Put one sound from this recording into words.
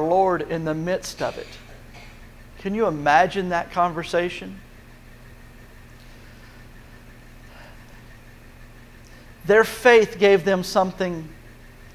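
An older man speaks calmly through a microphone, with pauses, in a large echoing hall.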